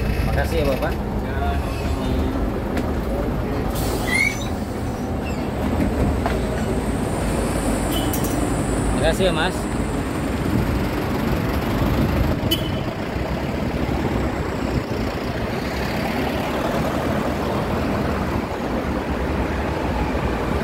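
A bus engine rumbles low and steady nearby.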